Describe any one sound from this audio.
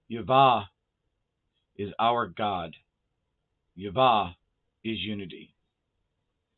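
A middle-aged man chants in a deep, melodic voice close to a microphone.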